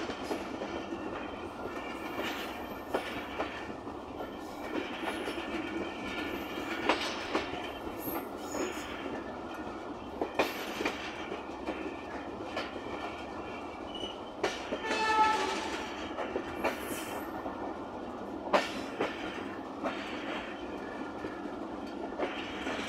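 Train wheels knock rhythmically over rail joints.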